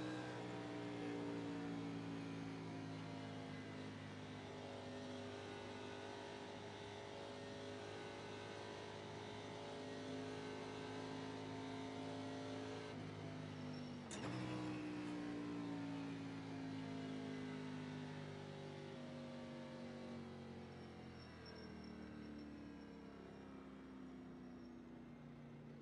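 A race car engine drones steadily at high revs, its pitch dipping and then slowly falling as it slows.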